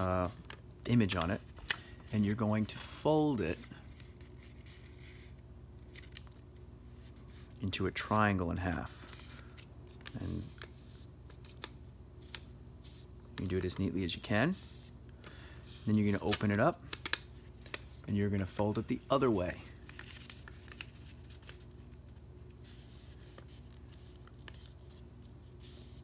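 Paper rustles and creases softly as it is folded.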